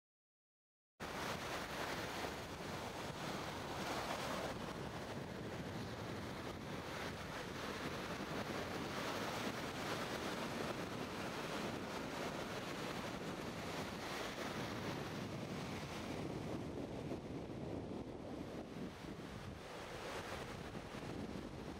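Waves break and wash onto the shore nearby.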